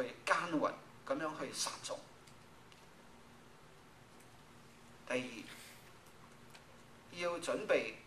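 A middle-aged man speaks calmly into a microphone in a large room, with pauses between phrases.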